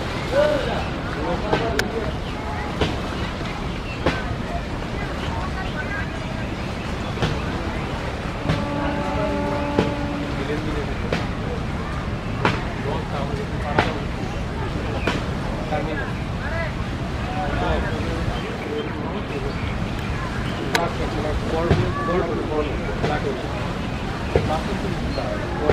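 A crowd of passengers chatters across water.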